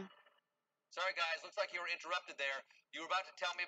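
A man talks calmly through a loudspeaker.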